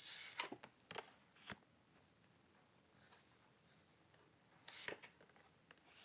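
Cards rustle and slide as they are shuffled by hand.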